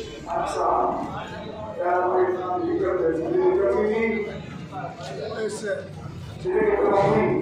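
A middle-aged man speaks with animation through a microphone and loudspeakers in an echoing room.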